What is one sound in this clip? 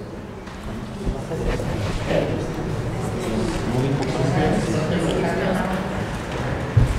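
Several people murmur quietly in the background.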